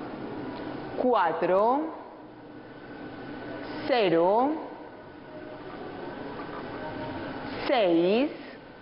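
A ball machine gives a short swooping electronic tone each time a ball comes out.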